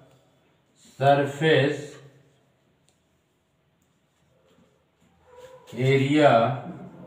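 An elderly man speaks calmly, as if teaching.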